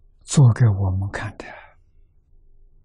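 An elderly man speaks calmly into a close microphone.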